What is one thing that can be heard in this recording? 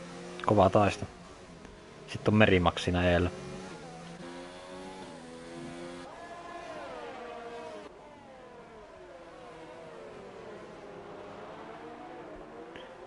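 Racing car engines roar and whine, rising and falling in pitch as the cars speed up and brake.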